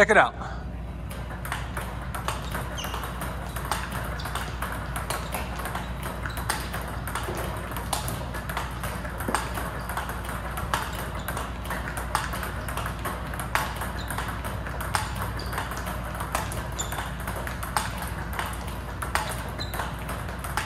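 A ping pong ball clicks rapidly against a paddle and a table.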